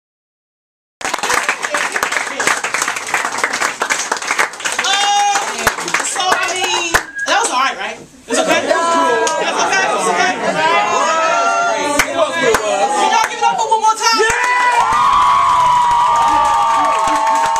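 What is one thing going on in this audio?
A crowd of young people cheers and chatters loudly.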